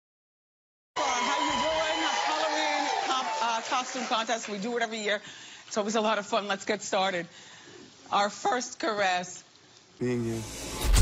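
A woman speaks on a microphone, slowly and unsteadily.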